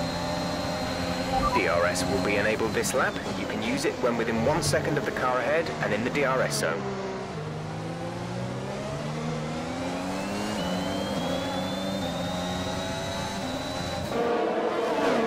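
A racing car engine screams, rising in pitch and dropping with each gear change.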